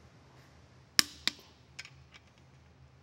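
A torque wrench clicks sharply several times.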